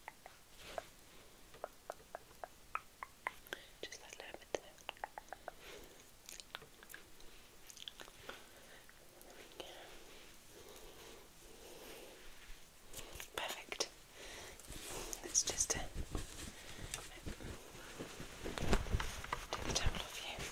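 A woman whispers softly close to a microphone.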